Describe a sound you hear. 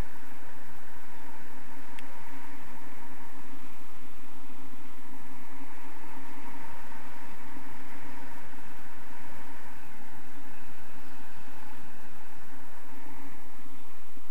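Strong wind rushes steadily past the microphone outdoors.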